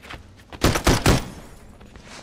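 Pistol shots crack in quick succession.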